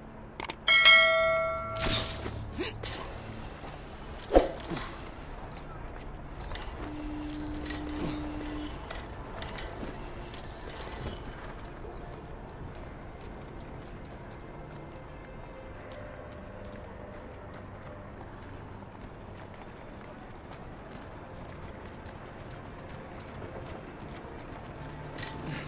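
A pulley whirs steadily along a taut rope.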